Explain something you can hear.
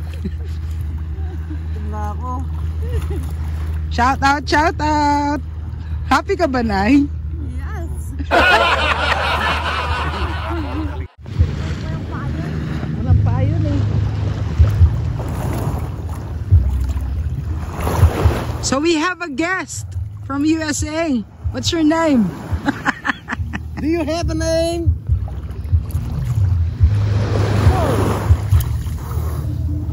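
Water splashes and sloshes around bathers.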